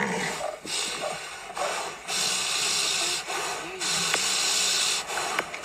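A lion growls low and rumbling close by.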